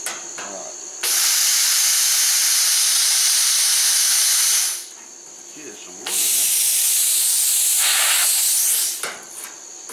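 A cutting torch hisses loudly as it cuts through sheet metal.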